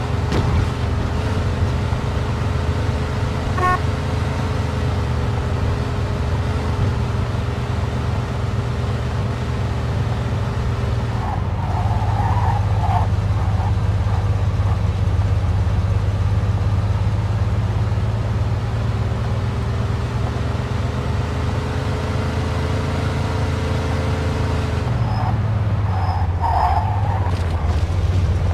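A car engine hums steadily as a car drives along a road.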